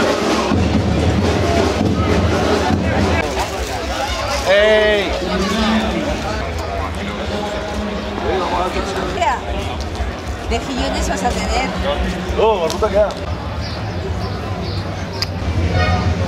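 A crowd of men and women chat outdoors, nearby and in the distance.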